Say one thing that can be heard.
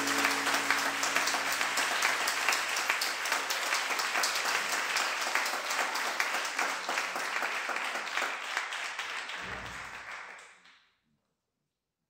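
An audience applauds loudly in a large hall, then the applause dies away.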